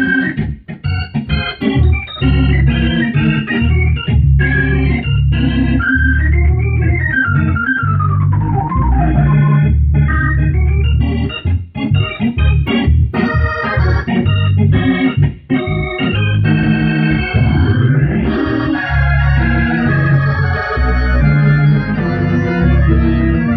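An electric organ plays a lively tune up close, with chords and quick runs.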